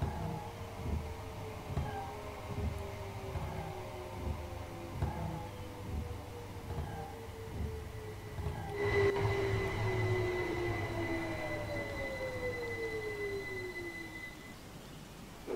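An electric train's motor whines, falling steadily in pitch as the train slows.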